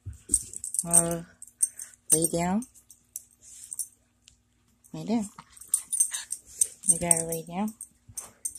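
A small dog's paws scuffle on a carpet.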